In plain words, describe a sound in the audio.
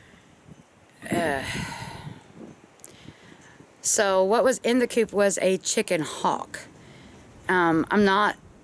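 A middle-aged woman speaks close up, with feeling.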